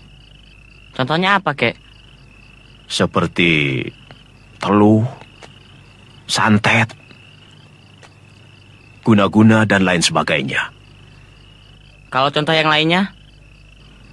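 A teenage boy speaks calmly, close by.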